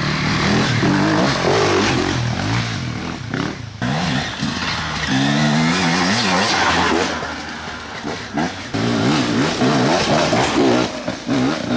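A dirt bike engine revs and sputters up and down.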